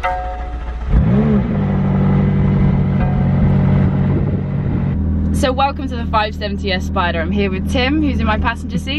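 A car engine starts with a rising rev and then idles steadily.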